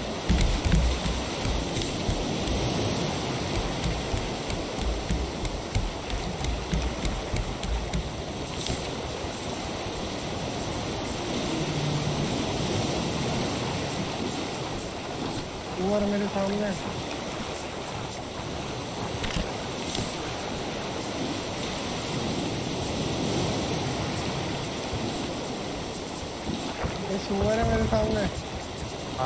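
Ocean waves wash steadily around a wooden raft.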